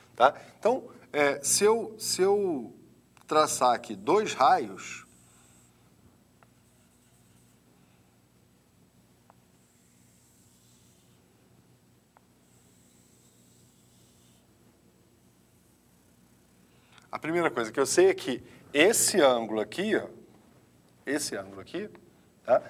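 A man explains calmly and clearly, close by.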